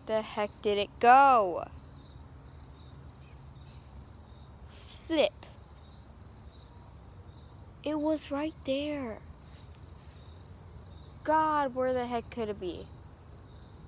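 A young girl speaks close by in short, lively bursts.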